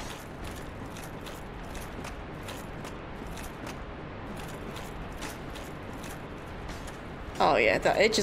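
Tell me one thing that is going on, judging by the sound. Armoured footsteps clank steadily on stone.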